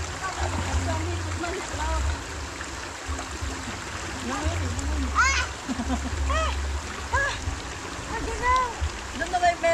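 Shallow water flows and burbles over rocks.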